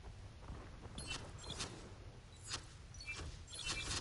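Short electronic game menu sounds chime as a character is switched.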